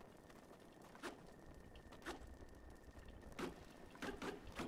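Blows thud against a wooden crate.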